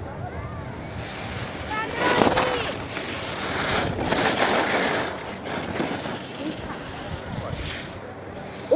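Skis scrape and hiss across hard snow close by.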